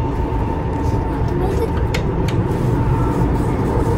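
Sliding doors open with a clunk.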